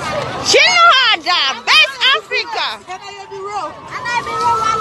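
A woman shouts excitedly close by.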